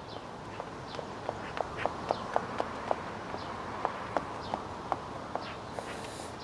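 Footsteps tap steadily on a hard path.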